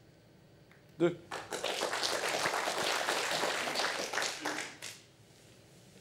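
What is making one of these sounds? An audience applauds loudly, then the applause dies away.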